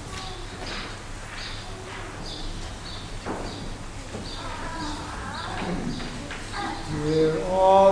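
A man murmurs prayers quietly at a distance.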